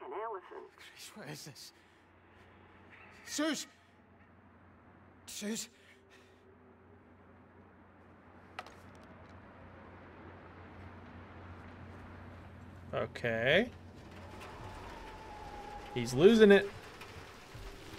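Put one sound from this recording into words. A young man talks into a microphone in short bursts.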